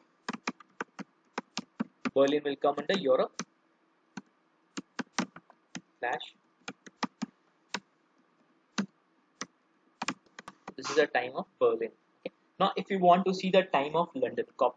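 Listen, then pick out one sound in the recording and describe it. Keys click on a keyboard in quick bursts of typing.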